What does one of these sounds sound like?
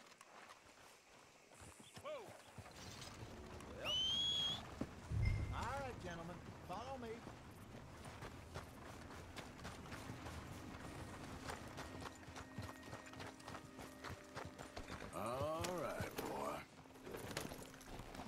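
Horse hooves thud on dirt.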